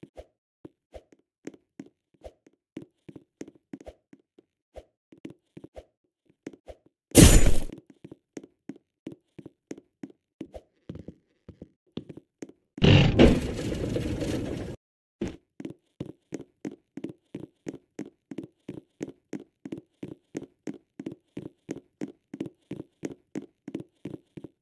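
Game footsteps patter in a quick, even rhythm.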